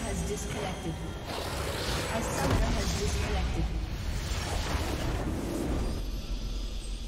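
A loud rumbling explosion booms.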